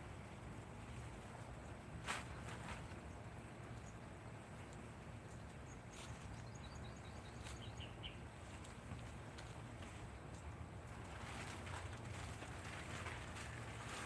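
A tarp rustles and crinkles as it is pulled over a vehicle.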